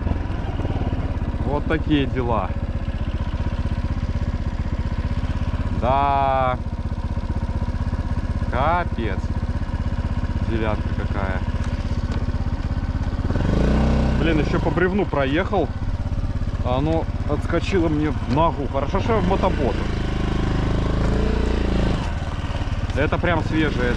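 An engine idles nearby with a steady low rumble.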